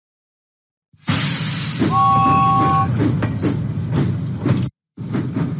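A steam engine chuffs along a track.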